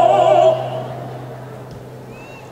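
An orchestra and choir hold a loud final chord that rings out and fades outdoors.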